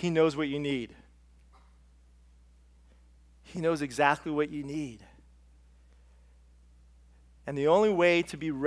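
A middle-aged man speaks expressively through a microphone, with pauses between phrases.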